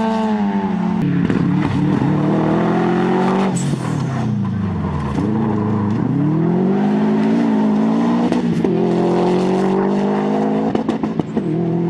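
A Subaru Impreza rally car's flat-four boxer engine revs hard as it accelerates through gear changes.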